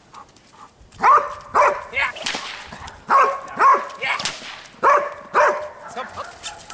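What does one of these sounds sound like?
A dog barks loudly outdoors.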